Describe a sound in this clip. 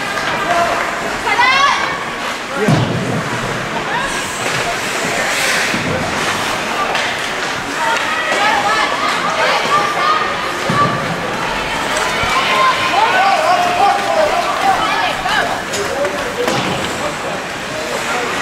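A crowd of spectators murmurs and cheers in a large echoing rink.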